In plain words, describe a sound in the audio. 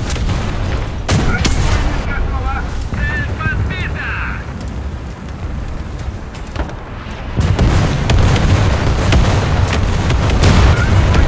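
A tank engine rumbles deeply, growing louder near the end.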